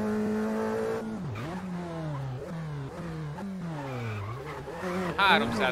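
A racing car engine's revs drop and climb sharply through quick gear changes.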